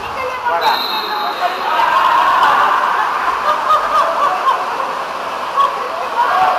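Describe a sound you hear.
Young men shout to each other across the water.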